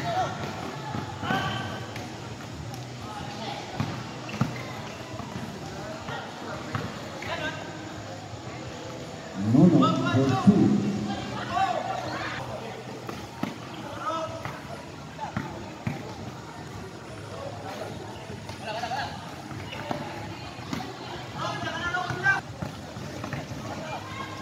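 Players' shoes squeak and thud on a court in a large echoing hall.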